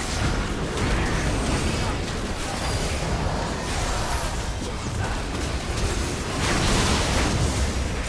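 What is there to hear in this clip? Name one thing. Game spell effects crackle and blast in a fight.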